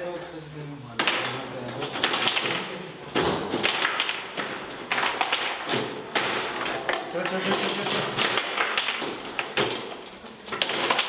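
Foosball rods rattle and the ball clacks against the players.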